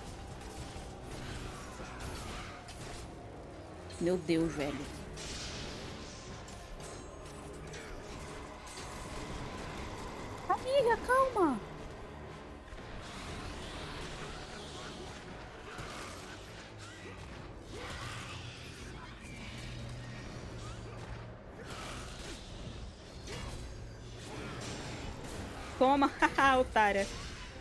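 Blades whoosh and clash in a fight.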